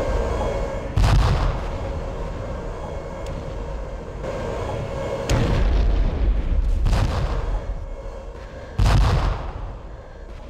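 A tank cannon fires with loud booming blasts.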